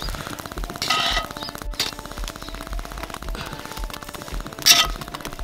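A metal spoon scrapes and stirs rice in a heavy pot.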